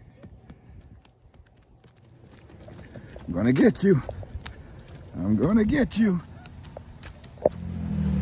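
A small child's footsteps patter on pavement.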